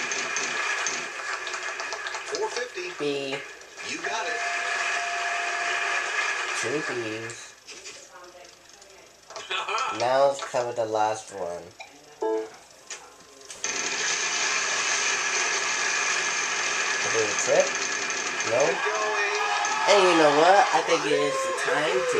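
A game wheel ticks rapidly as it spins.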